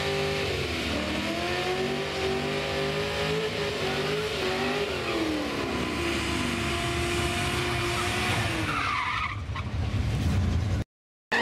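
Car tyres spin and screech on the track.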